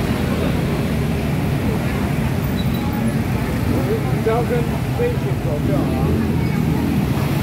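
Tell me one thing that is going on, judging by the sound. Many motorbike engines idle and rumble close by.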